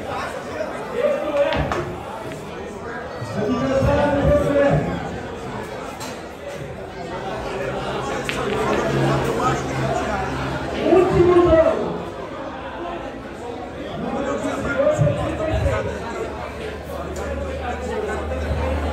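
A crowd murmurs nearby.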